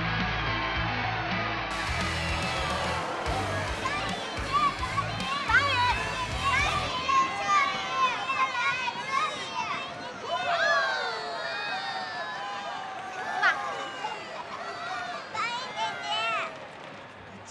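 A crowd cheers and chatters loudly in a large hall.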